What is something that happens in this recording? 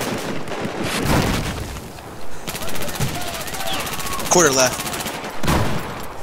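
A rifle fires loud shots in short bursts.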